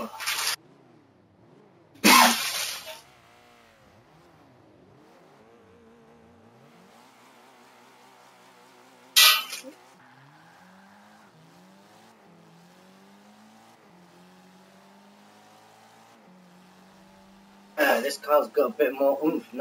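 A racing car engine revs and drones, rising and falling in pitch.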